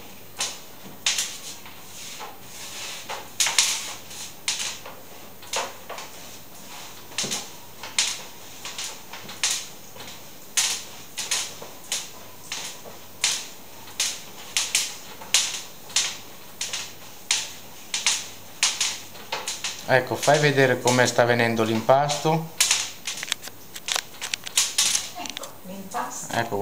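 Hands knead and slap dough against a table.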